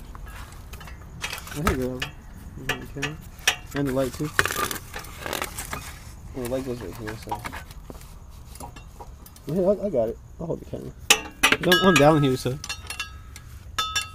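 Metal parts clink and knock under hands at work.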